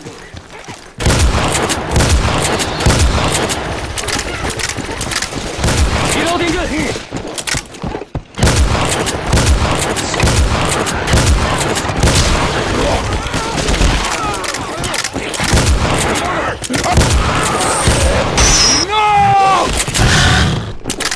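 A shotgun fires repeatedly in loud blasts.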